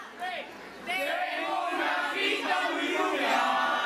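A group of men sings together close by.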